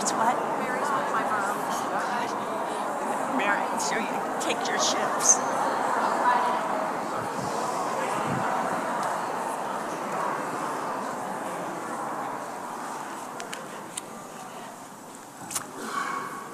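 A crowd of people chat and mingle in a large echoing hall.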